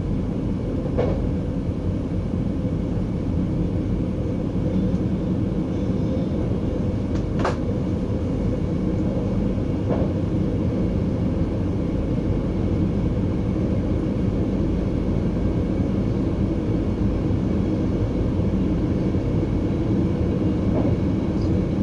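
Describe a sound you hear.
Train wheels clack over rail joints now and then.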